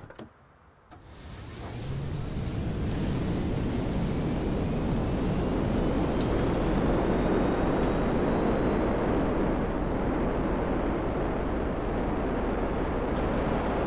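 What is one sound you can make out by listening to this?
A jet engine starts up and roars loudly with a slowly rising whine.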